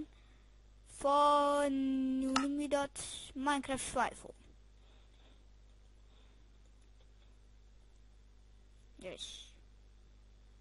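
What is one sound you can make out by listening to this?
A young girl sings and talks in a playful voice close to a microphone.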